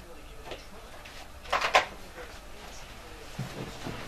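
A telephone receiver clatters down onto its cradle.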